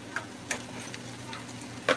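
A spatula scrapes against a frying pan.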